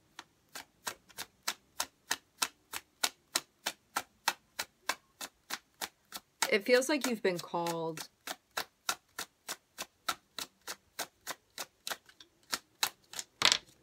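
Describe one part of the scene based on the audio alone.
Playing cards flick and snap rapidly as they are dealt from a deck.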